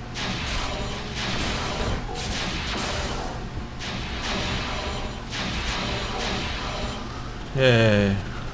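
Laser guns fire in quick, buzzing bursts.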